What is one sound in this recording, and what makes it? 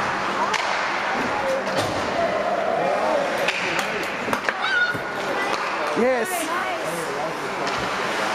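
Young children shout and cheer nearby.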